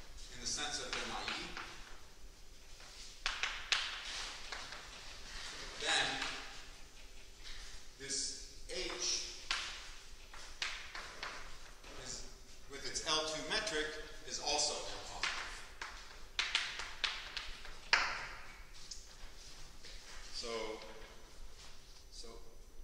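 A man lectures calmly in a slightly echoing room.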